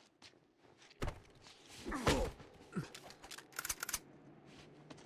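Heavy punches land in a scuffle.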